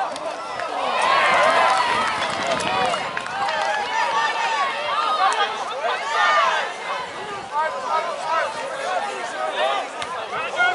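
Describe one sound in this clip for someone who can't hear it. A crowd of men and women shouts and cheers loudly outdoors.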